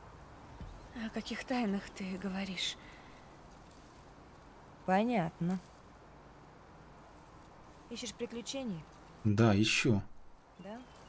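A young woman speaks calmly and teasingly nearby.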